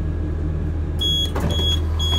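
A door button is pressed with a click.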